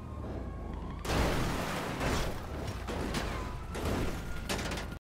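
A car crashes and tumbles over rough ground with heavy thuds and scraping.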